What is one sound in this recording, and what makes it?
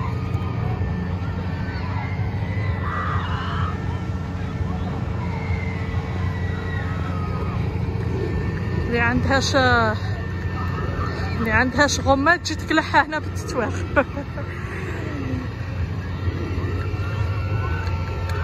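A fairground ride's machinery hums steadily.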